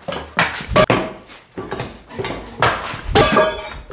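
A metal object clatters loudly onto a hard surface.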